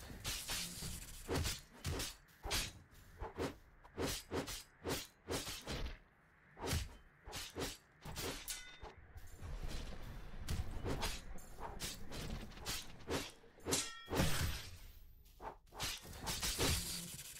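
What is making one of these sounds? A magic blast crackles and booms.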